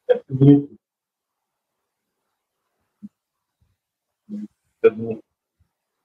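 A man speaks briefly in short bursts over an online call.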